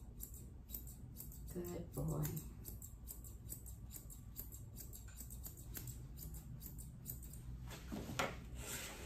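Grooming scissors snip through a poodle's curly coat.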